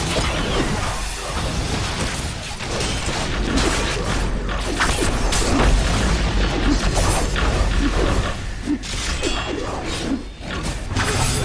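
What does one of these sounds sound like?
Weapons strike and clash repeatedly.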